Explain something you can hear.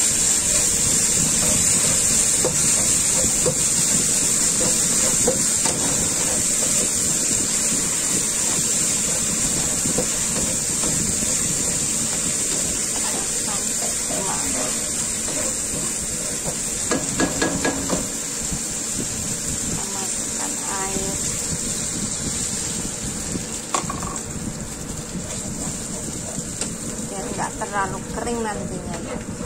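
A spatula scrapes and stirs against a pan.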